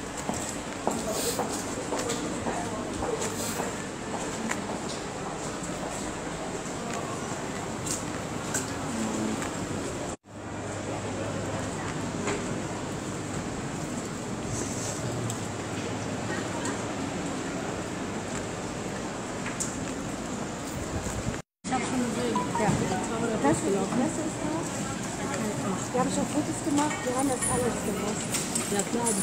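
Hail patters and rattles on a paved street outdoors.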